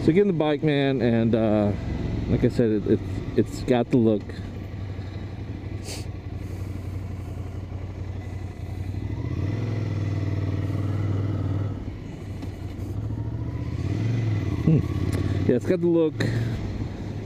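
A motorcycle engine hums steadily and revs up and down.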